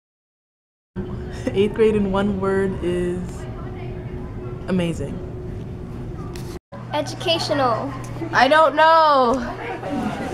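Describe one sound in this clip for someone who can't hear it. A teenage girl talks cheerfully close by.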